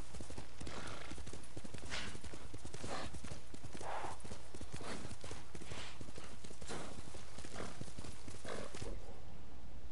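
A horse gallops, its hooves thudding steadily on the ground.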